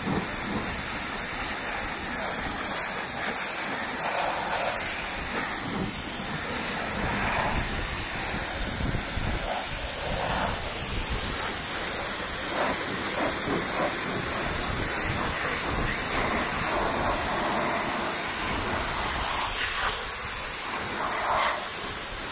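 A pressure washer sprays water in a steady hiss.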